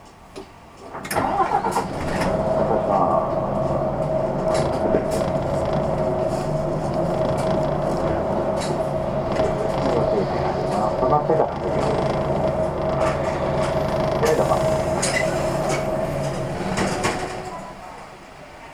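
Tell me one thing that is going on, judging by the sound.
A vehicle engine drones steadily up close as it drives along a road.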